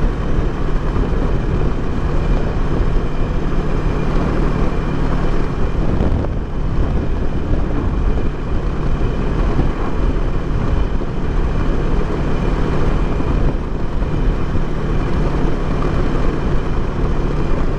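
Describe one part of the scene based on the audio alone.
Wind rushes loudly past a helmet.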